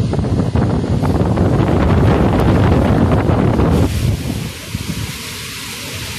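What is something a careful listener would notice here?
Palm leaves thrash and rustle loudly in the wind.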